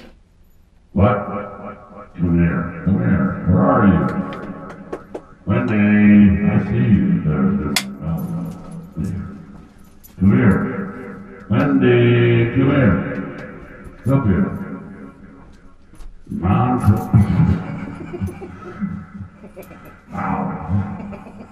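A man sings into a handheld microphone.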